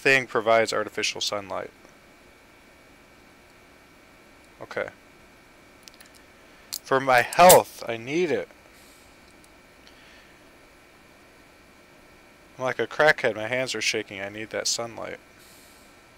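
Wire clips and clicks as a man works a crimping tool.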